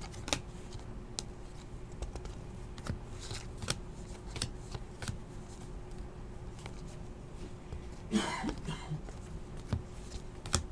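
Trading cards click and rustle as they are shuffled by hand.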